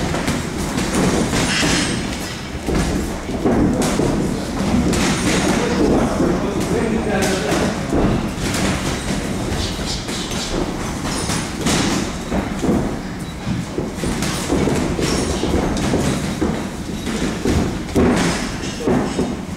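Boxing gloves thud against pads and gloves.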